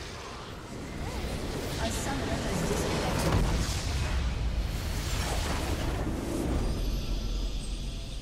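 A large structure explodes with a deep, rumbling boom.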